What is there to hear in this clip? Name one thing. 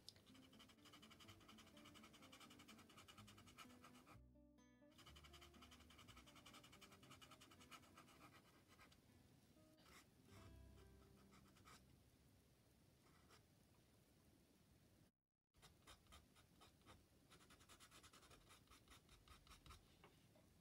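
A pencil scratches softly on paper in quick strokes.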